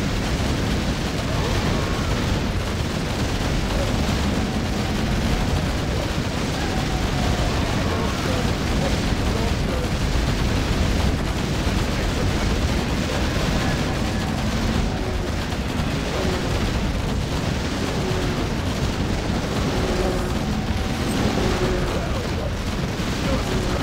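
Game spells explode and crackle rapidly in a dense battle.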